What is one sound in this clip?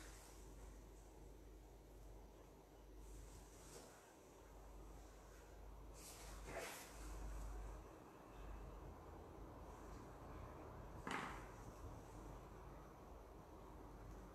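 Hands brush and rustle against a sheet of foam.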